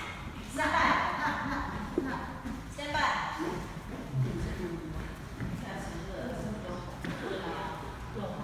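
Footsteps tap and shuffle on a hard floor.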